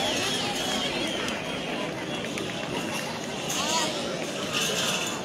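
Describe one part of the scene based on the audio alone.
A large crowd chatters and shouts loudly outdoors.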